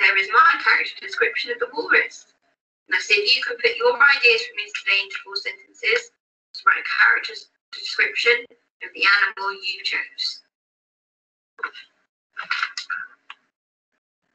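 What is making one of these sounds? A young person speaks calmly and explains.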